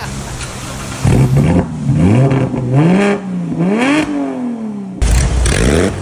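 A sports car engine revs up and down repeatedly.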